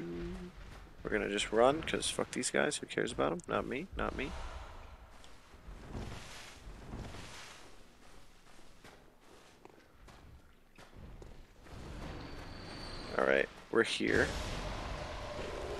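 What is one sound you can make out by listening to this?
Blades slash and strike flesh in a fight.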